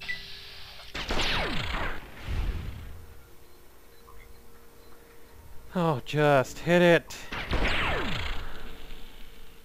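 A gun fires shots.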